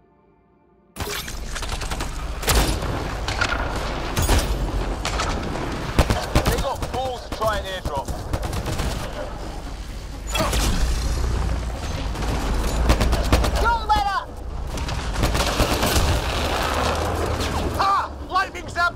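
A spacecraft engine hums and roars close overhead.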